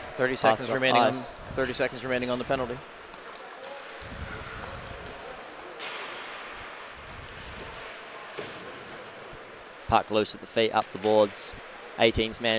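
Skates scrape and hiss on ice in a large echoing arena.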